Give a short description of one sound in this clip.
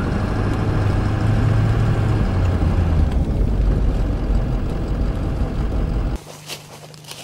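Tyres rumble over a gravel road.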